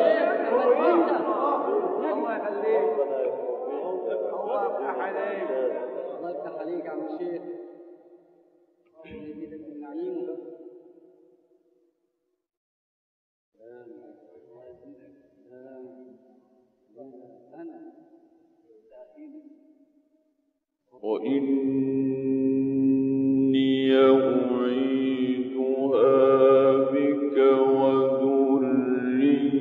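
A man chants in a long, melodic voice with pauses.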